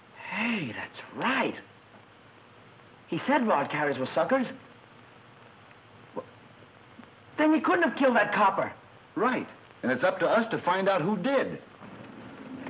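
A young woman speaks in reply, close by.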